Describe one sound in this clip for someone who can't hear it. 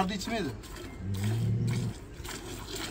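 A cow moos with a low, steady drone.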